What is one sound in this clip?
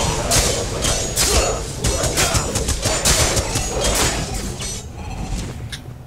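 Magic blasts crackle and boom in a fast fight.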